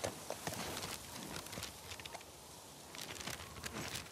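A paper map rustles as it is unfolded.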